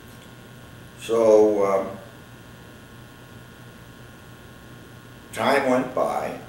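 An elderly man speaks calmly and slowly, close by, with long pauses.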